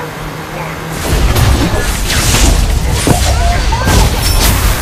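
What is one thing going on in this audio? Video game battle effects clash and burst loudly.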